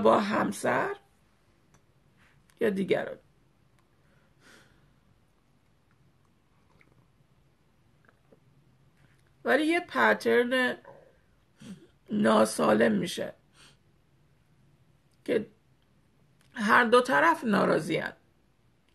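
A middle-aged woman speaks calmly and close up, in short bursts with pauses.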